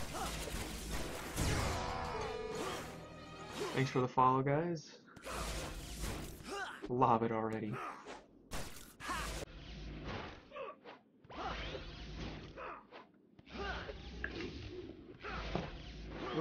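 A flying disc whooshes and smacks against a wall.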